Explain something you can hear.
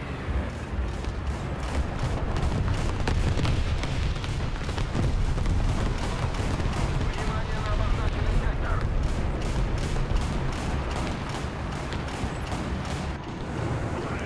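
Tank tracks clank and squeal over rough ground.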